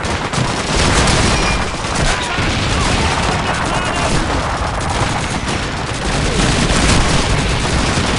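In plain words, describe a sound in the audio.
A rifle fires single loud shots close by.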